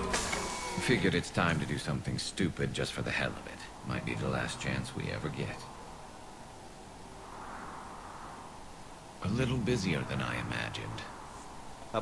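A man speaks calmly in a low, rough voice.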